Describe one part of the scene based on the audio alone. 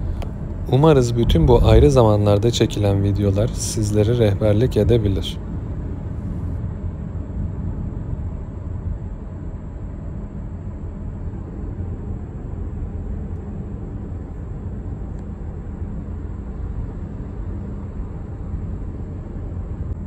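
A car hums steadily as it drives along a road, heard from inside.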